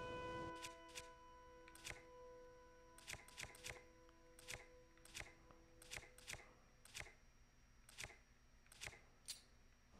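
Soft clicks tick in quick succession as menu items are flicked through.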